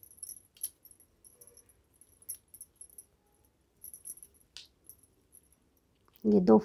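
Knitting needles click softly against each other.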